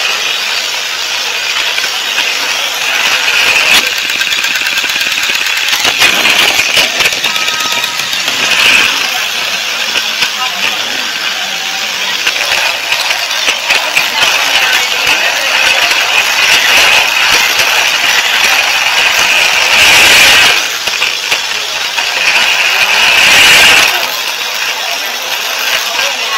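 A toy train's motor whirs steadily as it rolls along plastic track.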